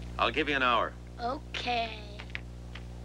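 A young boy speaks.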